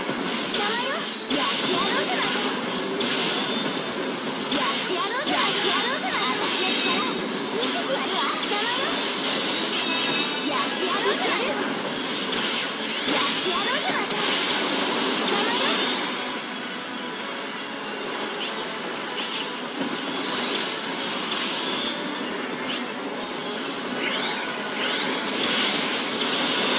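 Game weapons slash and blast in rapid bursts.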